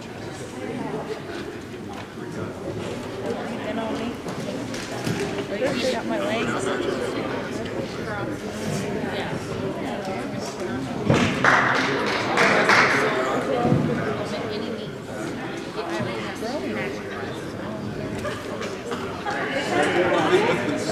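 A woman talks in a large echoing hall.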